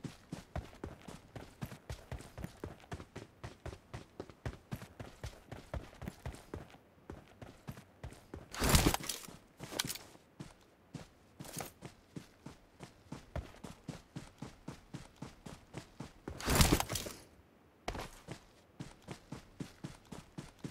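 Footsteps run quickly and steadily over grass and dirt.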